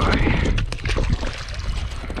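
Water splashes loudly close by.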